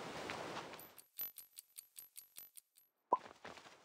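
A clock ticks quickly and steadily.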